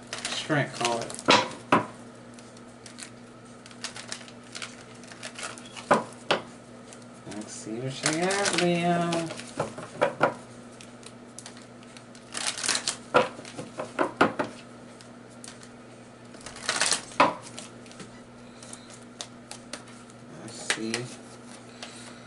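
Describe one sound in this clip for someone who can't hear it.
Cards shuffle and riffle in someone's hands.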